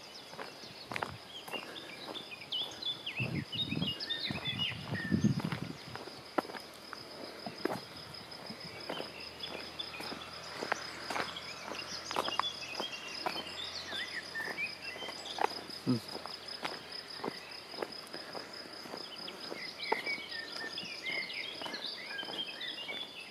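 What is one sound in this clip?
Footsteps crunch steadily on a paved road.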